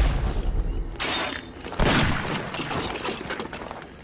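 Heavy bodies thud onto a stone floor.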